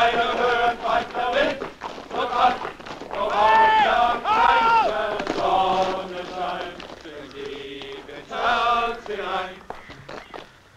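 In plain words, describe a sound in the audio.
A group of men sing together.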